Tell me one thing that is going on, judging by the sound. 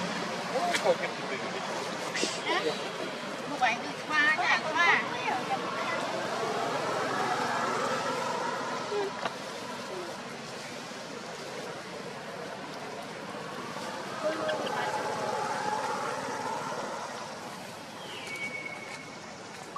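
A plastic bag crinkles and rustles as monkeys handle it.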